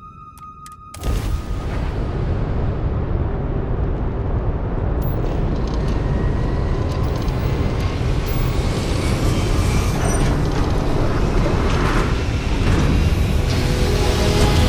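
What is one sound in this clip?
A spaceship's engines roar loudly and build in intensity.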